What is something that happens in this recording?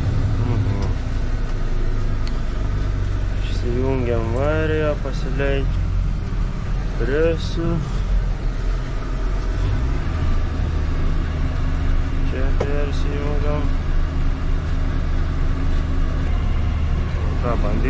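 A tractor engine drones steadily, growing louder partway through.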